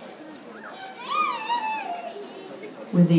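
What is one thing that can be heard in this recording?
A person in the audience whoops loudly.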